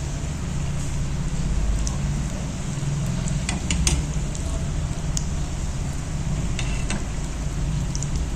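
A metal skimmer scrapes and taps against a pan.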